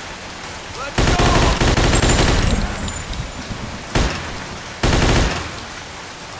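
A submachine gun fires loud, rapid bursts.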